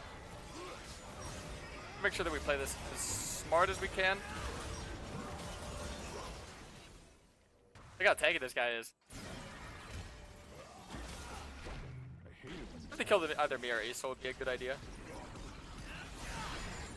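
Video game spell and combat effects whoosh and clash.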